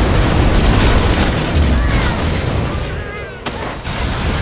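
Game spell effects burst and crackle in a fight.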